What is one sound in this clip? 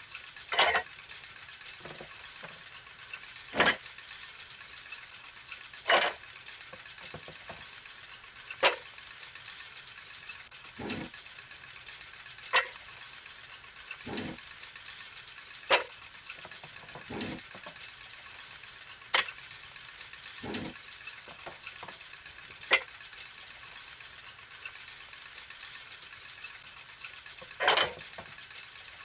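Metal gears click and clunk into place at intervals.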